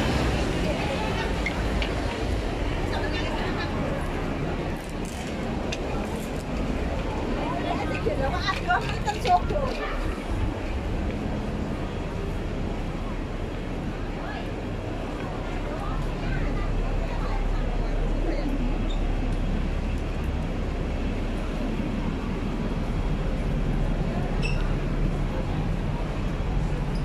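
Footsteps patter on pavement close by.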